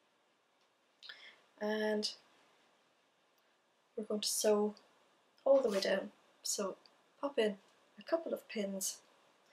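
A woman talks calmly and close by, in short phrases.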